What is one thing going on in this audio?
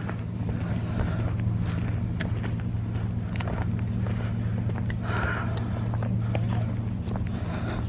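Footsteps crunch on a road outdoors.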